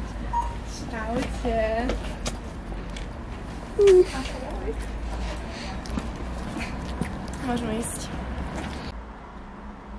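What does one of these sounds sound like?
Young women greet each other excitedly and laugh.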